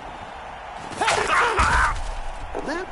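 Armoured players crash together with a loud, brief thud.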